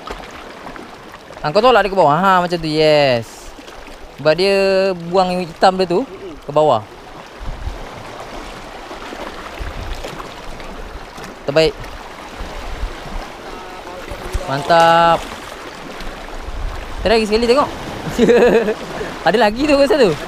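Waves splash gently against rocks.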